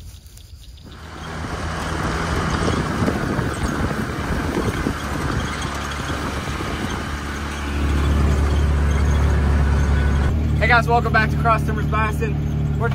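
A vehicle engine rumbles while driving over rough ground.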